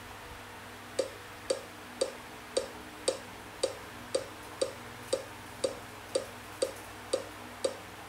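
A mobile game gives short, even blips as a ball bounces.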